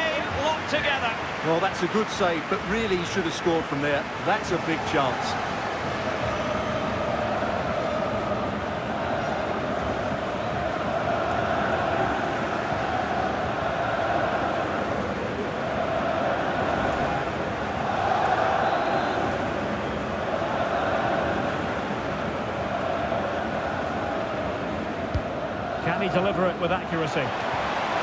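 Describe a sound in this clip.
A large stadium crowd chants in unison.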